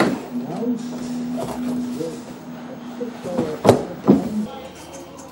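Papers rustle in a wooden drawer.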